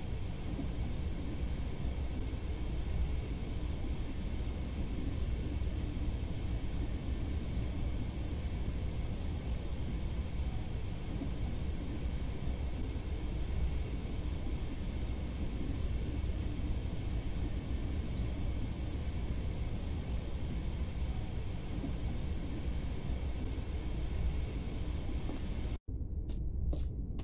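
A train rumbles along steadily.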